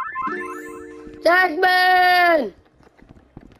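A short cheerful electronic jingle chimes.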